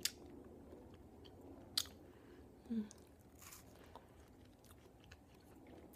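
A young woman bites into a crisp melon.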